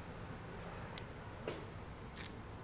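A man sips a drink from a glass.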